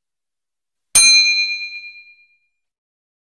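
A small bell dings and rings out.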